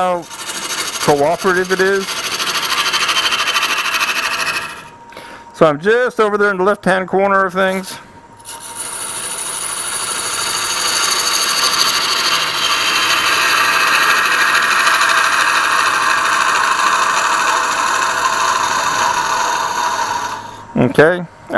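A lathe tool hisses as it cuts into spinning wood.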